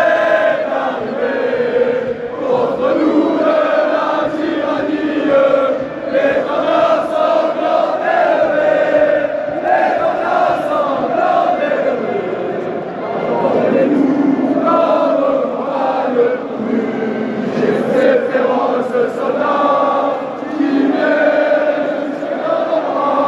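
A large stadium crowd sings and chants loudly together.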